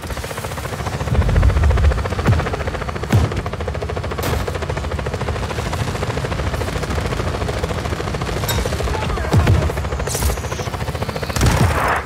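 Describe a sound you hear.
A gun fires in bursts.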